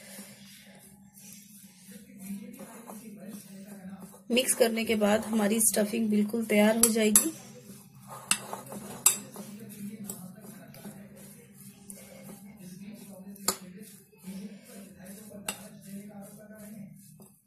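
A hand mixes chopped vegetables in a bowl with a soft, moist rustling.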